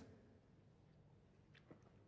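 A man gulps down a drink.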